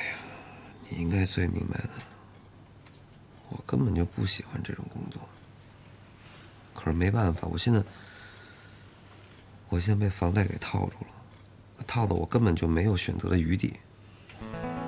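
A young man speaks calmly and with some complaint up close.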